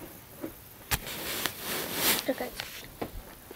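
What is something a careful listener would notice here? Fabric rustles and rubs close to the microphone.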